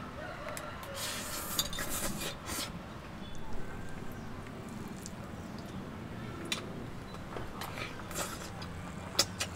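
A person slurps noodles loudly.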